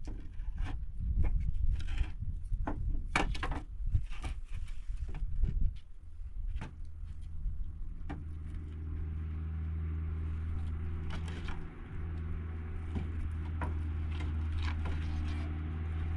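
Wooden planks knock and clatter as they are stacked.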